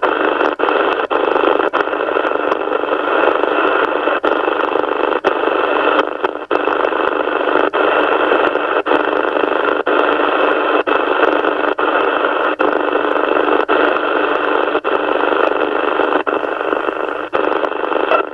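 A radio clicks each time it switches to a new channel.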